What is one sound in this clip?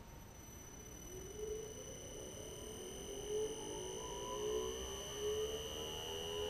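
An electric motor whirs and rises steadily in pitch as it speeds up.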